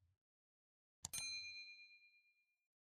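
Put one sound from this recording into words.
A small bell chimes and slowly rings out.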